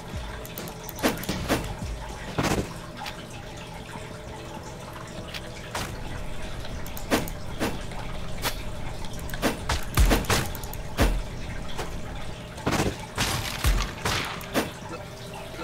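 Sword slashes whoosh and hit with sharp thuds.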